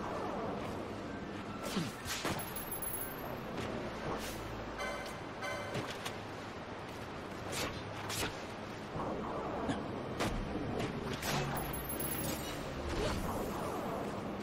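Game sword strikes and magic effects crack and whoosh repeatedly.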